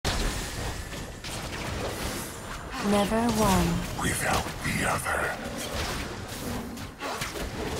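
Spell effects whoosh and crackle as game characters fight.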